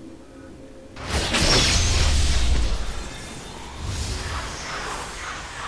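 A magic spell bursts with a loud crackling whoosh.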